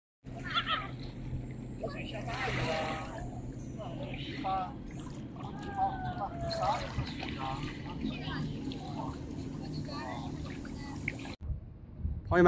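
River water laps against a stony shore.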